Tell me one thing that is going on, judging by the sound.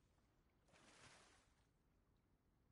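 Water gurgles and rushes underwater.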